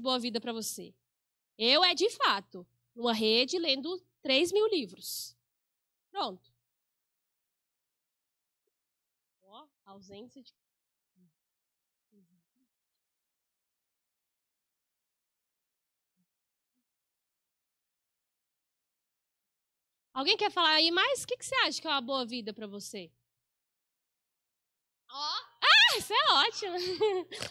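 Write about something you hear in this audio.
A young woman speaks calmly into a microphone with pauses.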